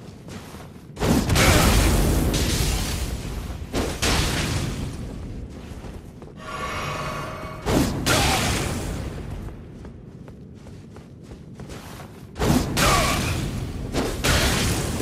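Sword blows strike with heavy whooshing impacts.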